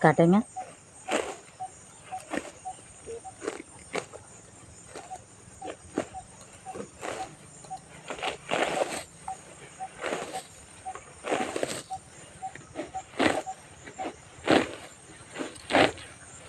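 Grass rustles and tears as it is pulled by hand.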